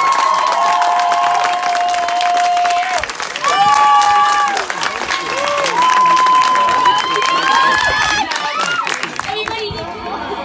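People in a crowd clap their hands.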